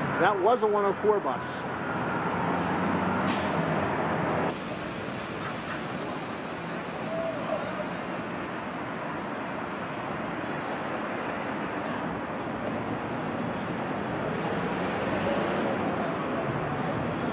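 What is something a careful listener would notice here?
A bus engine idles and rumbles nearby.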